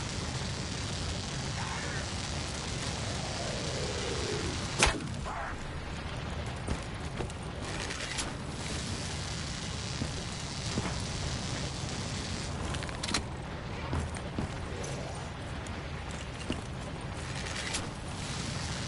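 A bow twangs as arrows are shot.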